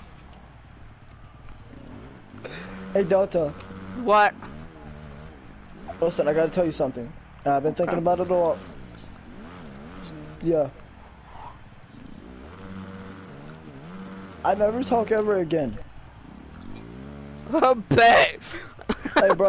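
A dirt bike engine revs hard, rising and falling in bursts.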